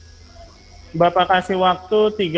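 A young man speaks calmly through a microphone.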